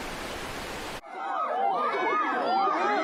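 A chimpanzee hoots and screeches.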